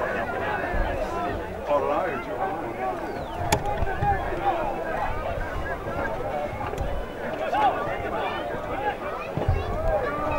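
Several men shout and call to each other outdoors.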